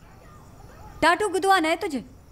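A middle-aged woman speaks with concern nearby.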